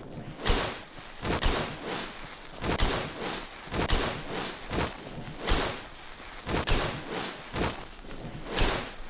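Footsteps crunch steadily over grass and stones.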